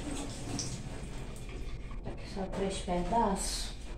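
Dishes clink in a sink.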